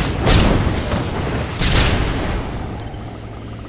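Explosions boom and rumble in a game battle.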